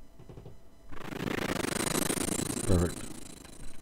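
A blender whirs loudly, then stops.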